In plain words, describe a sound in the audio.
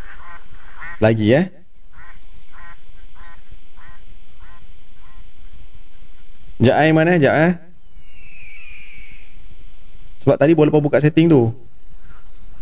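A man talks loudly and with animation into a close microphone, in short bursts.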